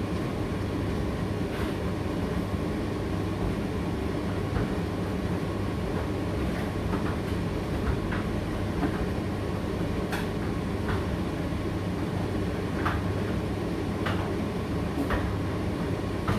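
A condenser tumble dryer runs a drying cycle with a steady low hum and rumble.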